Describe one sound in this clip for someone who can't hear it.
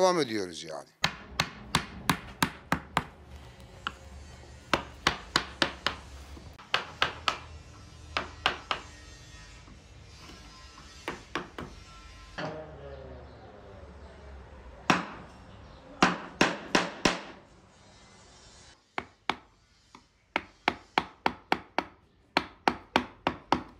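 A wooden mallet taps a chisel into wood in quick, sharp knocks.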